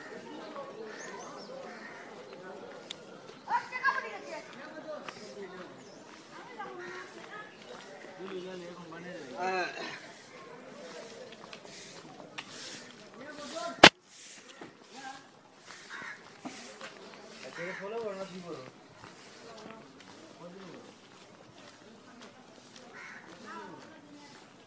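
People talk in a quiet street outdoors.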